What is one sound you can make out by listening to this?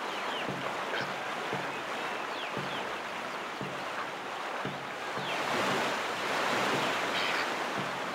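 Water rushes and sprays steadily.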